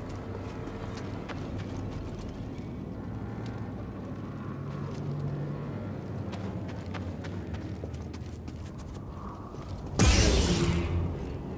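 Footsteps scuff on rocky ground.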